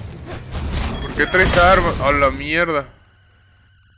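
A loud explosion booms and then cuts off.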